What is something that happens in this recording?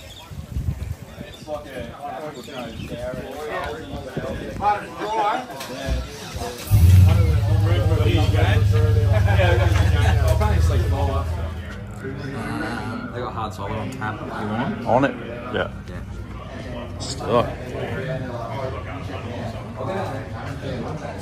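A crowd of men chat and talk over one another nearby.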